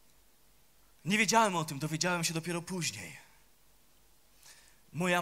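A middle-aged man speaks with feeling into a microphone, his voice carried over loudspeakers.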